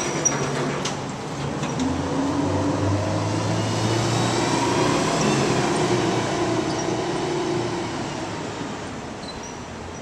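A diesel fire ladder truck pulls away down a street.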